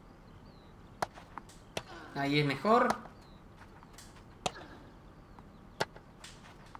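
A tennis ball is struck sharply with a racket, again and again.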